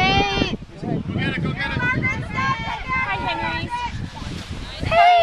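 A woman shouts and cheers excitedly close by.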